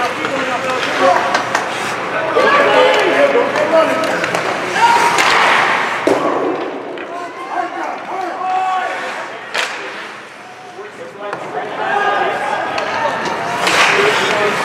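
Spectators close by shout and cheer.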